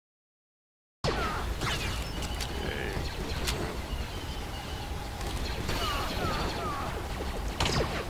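Laser rifle shots zap and crack again and again.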